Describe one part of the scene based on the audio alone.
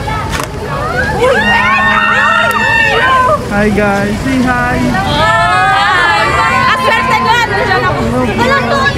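A crowd of young women shrieks and cheers excitedly nearby.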